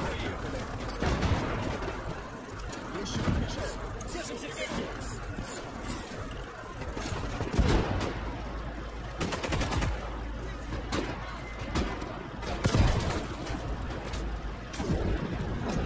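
Gunshots and explosions bang now and then.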